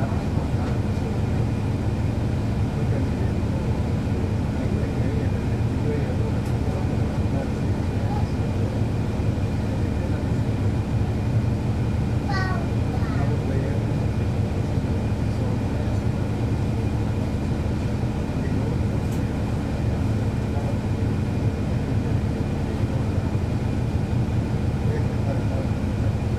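A bus engine idles close by with a steady low rumble.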